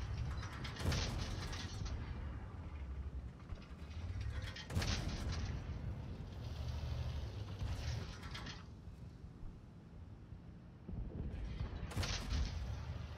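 Tank cannons fire with loud, sharp booms.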